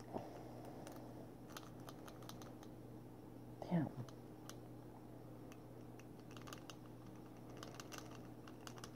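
Small metal parts click and scrape close by.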